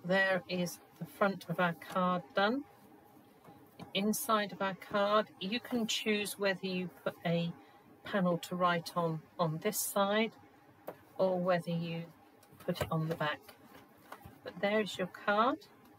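A folded card creaks as it is opened and closed.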